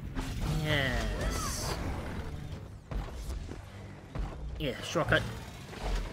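Sharp strikes and slashes land in a fight.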